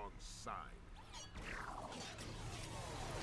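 A laser beam fires with a sweeping zap.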